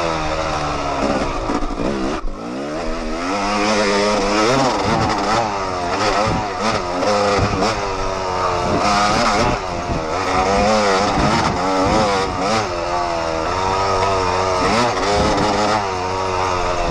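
A dirt bike engine revs loudly, rising and falling in pitch as it accelerates.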